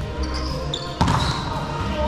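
A volleyball is struck with a sharp slap in a large echoing gym.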